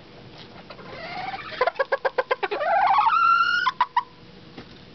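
A rooster crows loudly close by.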